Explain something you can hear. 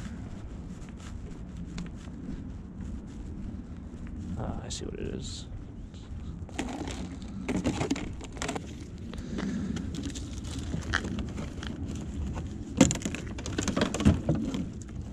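Footsteps scuff along a pavement outdoors.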